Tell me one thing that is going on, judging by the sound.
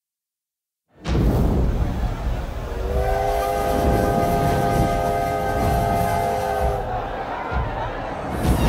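A large crowd shouts and cheers.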